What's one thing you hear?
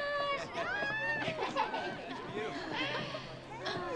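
A group of young women and men sing together in sustained, drawn-out notes.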